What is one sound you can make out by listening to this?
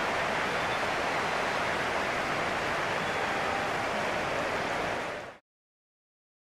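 A large stadium crowd roars and murmurs steadily, then cuts off abruptly.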